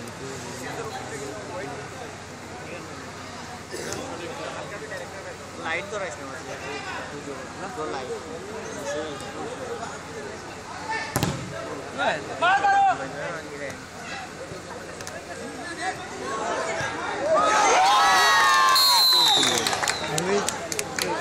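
A crowd of spectators chatters and cheers outdoors, rising to loud shouting.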